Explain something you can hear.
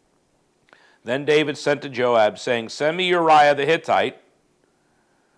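A man speaks calmly and close through a clip-on microphone.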